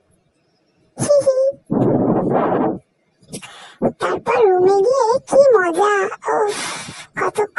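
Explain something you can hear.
A man speaks cheerfully close by.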